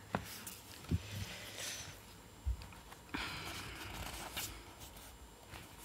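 Paper pages rustle.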